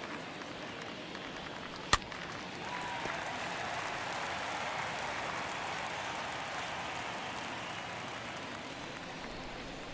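A stadium crowd murmurs and cheers, swelling after the hit.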